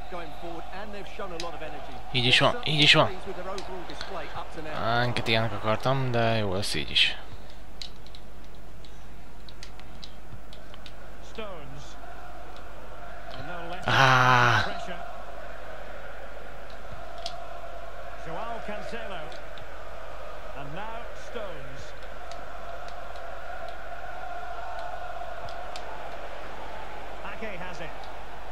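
A large stadium crowd murmurs and hums steadily throughout.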